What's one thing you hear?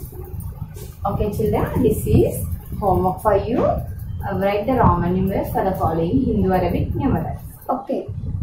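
A young woman speaks calmly and clearly to listeners close by.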